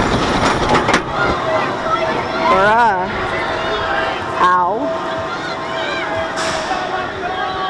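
A roller coaster train rolls slowly and hums to a stop.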